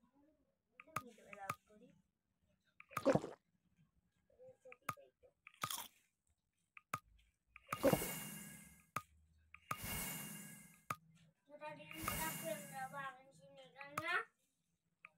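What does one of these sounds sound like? Short game interface clicks and pops sound as items are picked up and moved.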